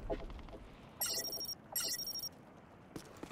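Electronic menu tones chime twice in quick succession.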